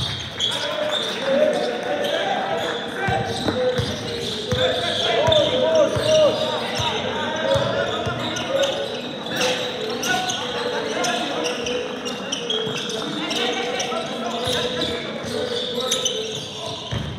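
Young men call out to each other in a large echoing gym.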